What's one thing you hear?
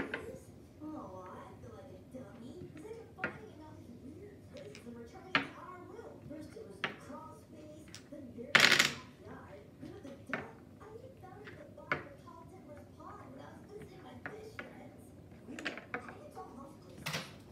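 Dominoes click as they are set down on a wooden table.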